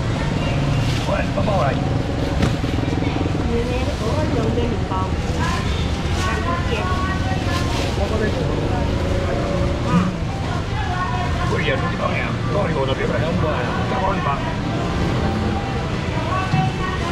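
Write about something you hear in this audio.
Plastic bags rustle.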